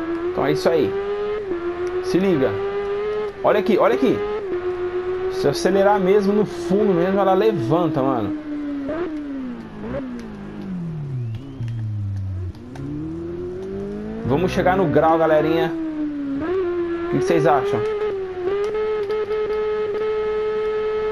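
A motorcycle engine whines at high revs, dropping and rising in pitch as it shifts gears and slows into corners.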